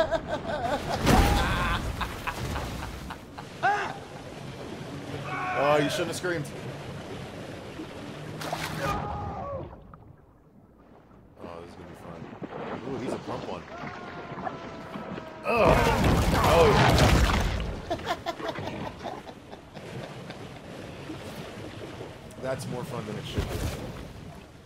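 Water splashes and laps around a swimming animal.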